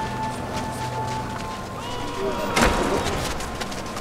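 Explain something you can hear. Soldiers march in step on stone.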